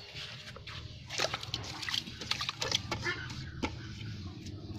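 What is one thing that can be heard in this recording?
A hand splashes and stirs water in a metal pot.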